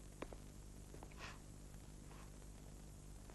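A young woman sobs quietly nearby.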